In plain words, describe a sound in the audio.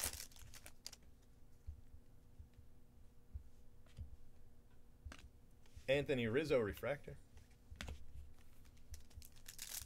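Trading cards rustle and click as hands shuffle through them up close.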